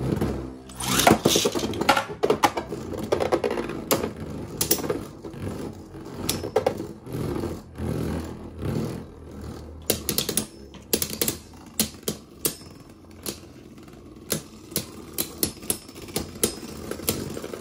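Spinning tops clash and clack against each other.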